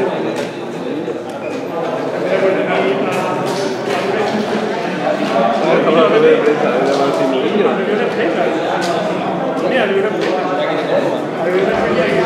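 Several men talk at once, a little way off.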